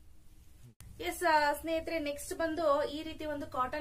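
A young woman speaks clearly and calmly close by.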